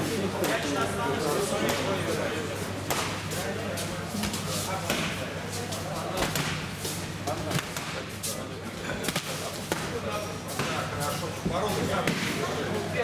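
Boxing gloves thump against bodies and gloves.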